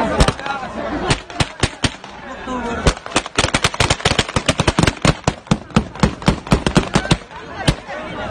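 A crowd of men shouts and clamours outdoors.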